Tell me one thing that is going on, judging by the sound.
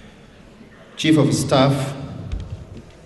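A man speaks loudly through a microphone and loudspeakers in an echoing hall.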